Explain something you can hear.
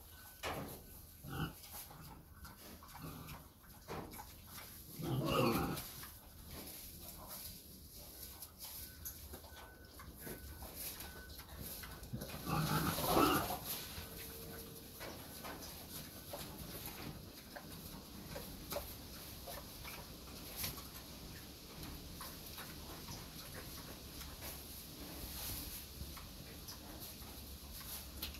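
Dry grass and twigs rustle and crackle underfoot.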